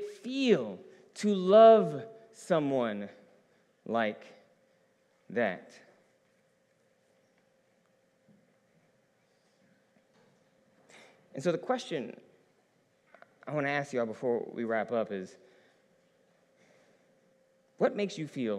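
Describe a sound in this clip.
A man speaks slowly and calmly into a microphone, with pauses, in a large echoing hall.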